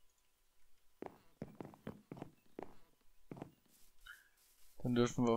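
Footsteps tread softly over grass and wood.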